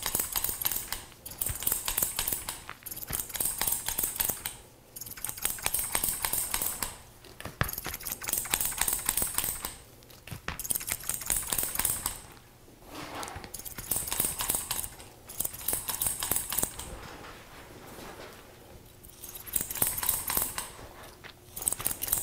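Scissors snip rapidly through hair close by.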